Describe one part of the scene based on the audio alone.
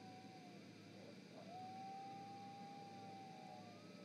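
An owl's wings flap softly as it lands on a perch.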